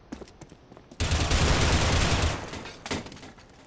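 An assault rifle fires a rapid burst.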